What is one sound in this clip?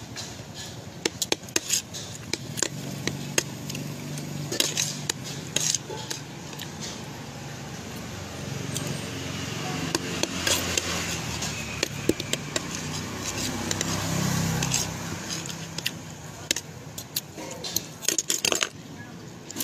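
A fork clinks against a plate.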